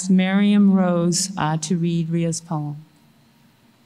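A woman speaks slowly into a microphone in an echoing hall.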